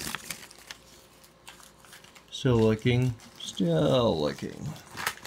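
A plastic sheet crinkles softly in someone's hands.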